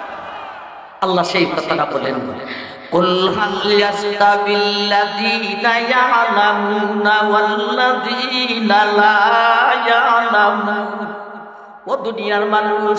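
A middle-aged man chants loudly in a melodic, drawn-out voice into a microphone.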